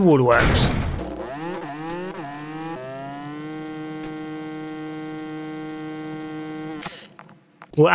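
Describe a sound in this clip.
A motorbike engine revs up and then runs at a steady hum.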